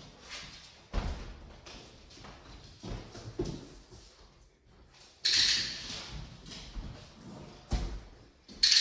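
A plastic box thuds onto a hard floor.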